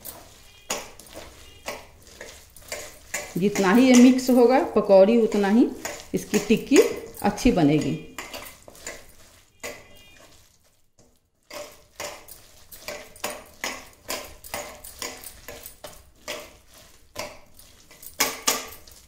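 Hands squish and knead a mashed potato and cabbage mixture in a steel bowl.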